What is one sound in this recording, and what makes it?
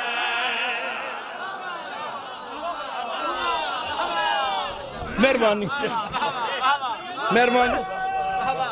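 A man chants loudly and passionately through a microphone and loudspeakers.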